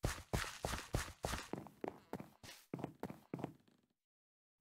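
Footsteps tap on a wooden floor.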